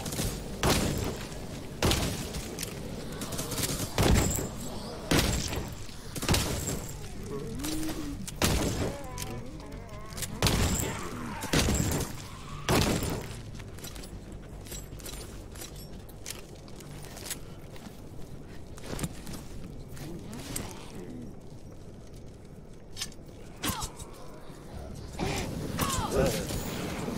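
Magic blasts burst with loud whooshes.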